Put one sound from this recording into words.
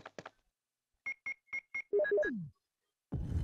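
Electronic menu beeps chime in quick succession.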